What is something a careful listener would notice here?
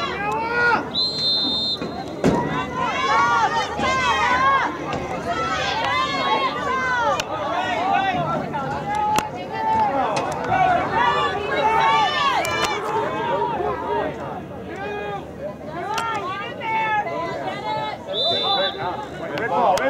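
A referee blows a shrill whistle.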